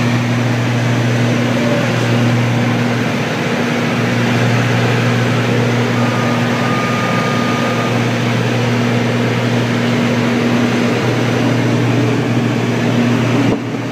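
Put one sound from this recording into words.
An aircraft engine drones loudly and steadily.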